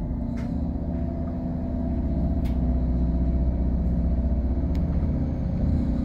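A vehicle pulls away and rolls along the road.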